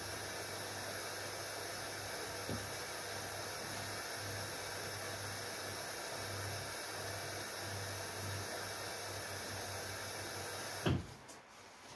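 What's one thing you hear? A washing machine whirs and hums steadily, then stops with a soft thud.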